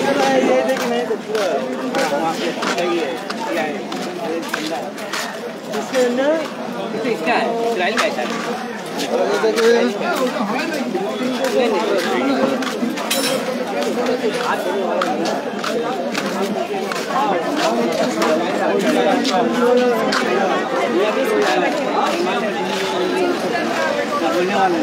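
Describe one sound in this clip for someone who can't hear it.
Footsteps shuffle on a paved street.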